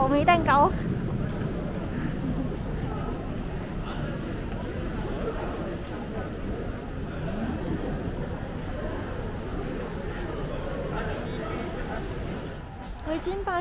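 A crowd murmurs and footsteps echo in a large indoor hall.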